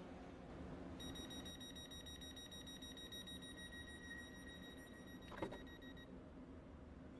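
A door warning beeps steadily.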